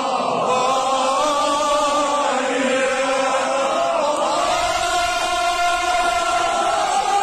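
A large crowd of men chants loudly in unison in an echoing hall.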